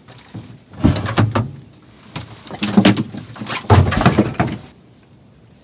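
A cooler lid creaks and clunks as it is lifted open.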